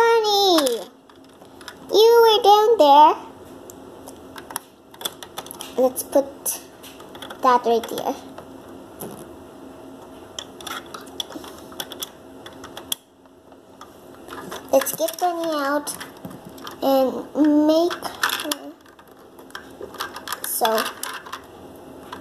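A young girl talks close by, in a lively high voice.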